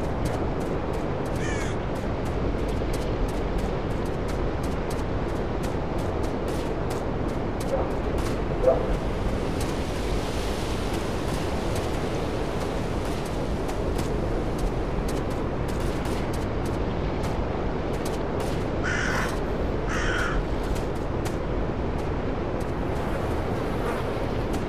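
Wind blows steadily through the trees outdoors.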